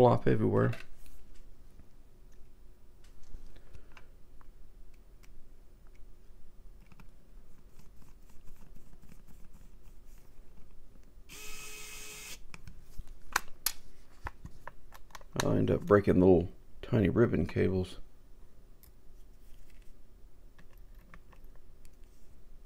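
Small plastic parts click and tap as they are handled up close.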